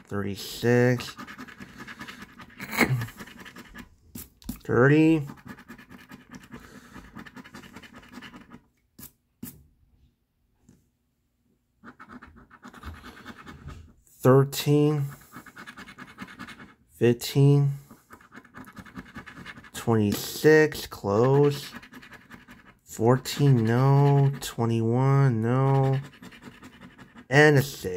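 A coin scrapes across a scratch card.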